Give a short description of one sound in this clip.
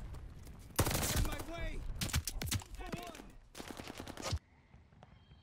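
A submachine gun fires rapid bursts up close.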